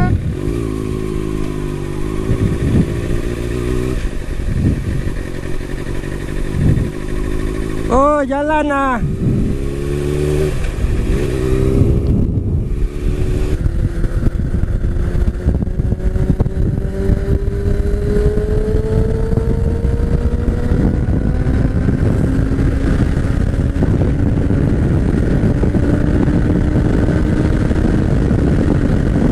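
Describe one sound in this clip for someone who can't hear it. Wind rushes past the rider loudly.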